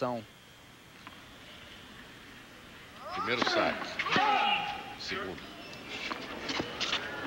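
A tennis ball is struck with a racket, with a sharp pop.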